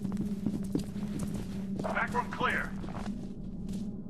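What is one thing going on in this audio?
Gunshots ring out in short bursts.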